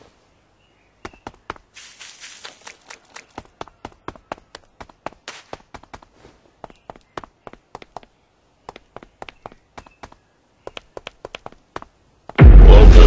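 Footsteps patter steadily on the ground.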